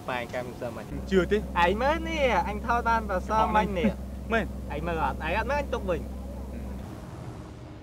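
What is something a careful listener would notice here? A second young man answers in a questioning tone close by.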